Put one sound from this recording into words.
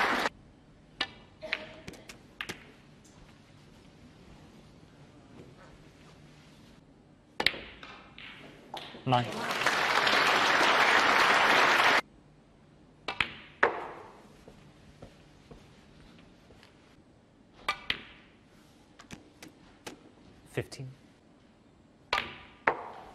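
Snooker balls click sharply against each other and the cushions.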